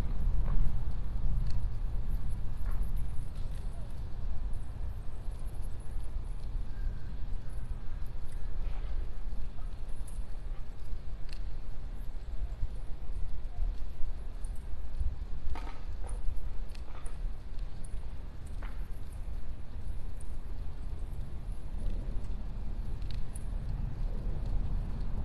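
Water laps gently against a wall.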